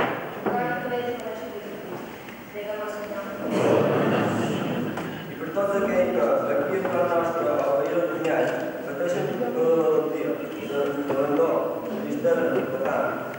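A young man reads aloud steadily through a microphone in an echoing hall.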